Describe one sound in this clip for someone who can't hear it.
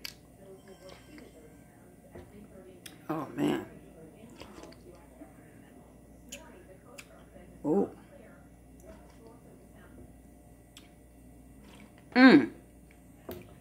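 A spoon clinks against a bowl.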